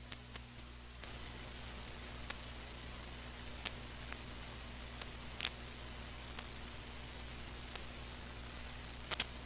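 A small toy motor whirs steadily.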